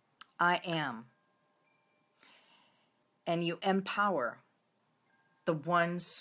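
A middle-aged woman speaks earnestly and close to the microphone, in short bursts with pauses.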